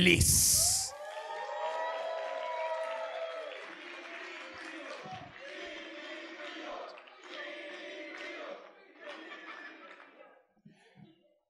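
An audience cheers and claps in a large hall.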